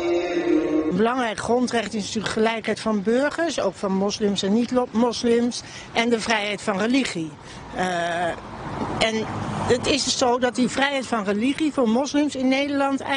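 A middle-aged woman speaks calmly into a microphone close by.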